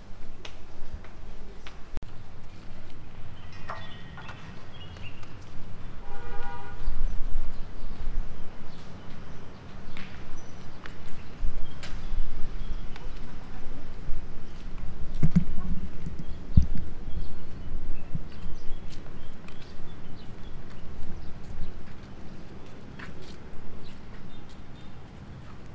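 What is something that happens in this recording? Footsteps tap on a hard floor and then on paving.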